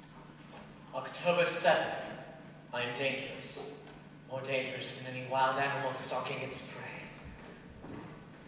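A young woman speaks clearly and expressively in a large room.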